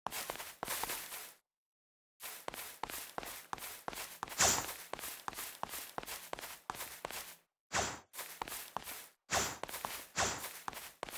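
A character's footsteps run quickly over grass.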